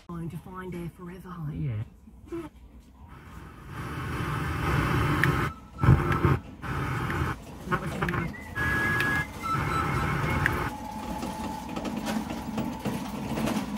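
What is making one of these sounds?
Buttons on a car stereo click as they are pressed.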